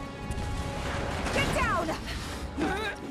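A young woman shouts urgently.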